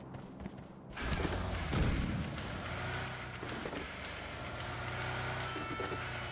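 A car engine accelerates as a car drives off.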